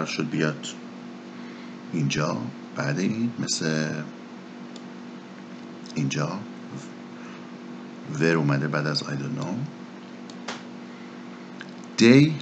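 A man speaks calmly in short phrases into a microphone.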